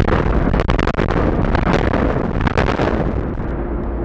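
Explosive charges crack and bang in rapid succession.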